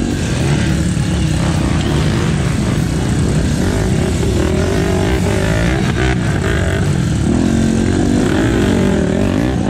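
Dirt bike engines rev and sputter close by.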